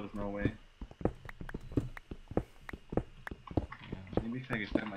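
A pickaxe chips at stone blocks in quick, regular knocks.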